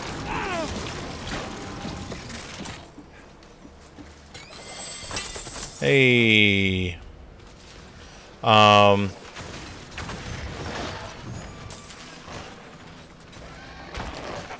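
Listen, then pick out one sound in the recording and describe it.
Video game combat clashes and crackles with magic blasts.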